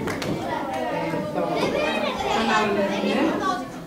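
A woman talks into a microphone over a loudspeaker.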